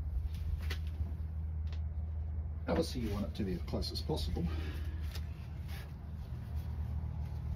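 A metal chuck clicks as a hand tightens it.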